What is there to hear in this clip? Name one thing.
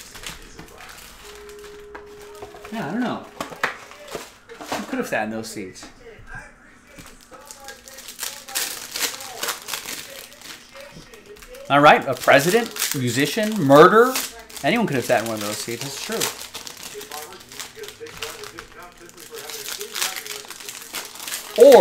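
Card packs rustle and crinkle as they are handled.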